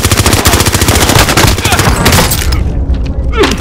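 An automatic rifle fires a rapid burst.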